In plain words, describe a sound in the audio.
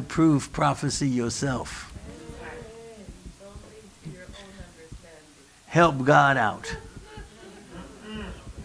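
A middle-aged man preaches with animation into a microphone in a large echoing room.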